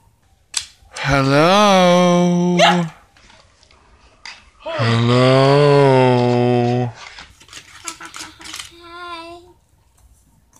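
A young girl speaks playfully close by.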